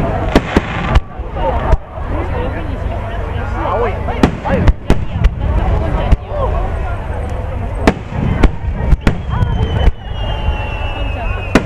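Fireworks crackle and fizz as they burst.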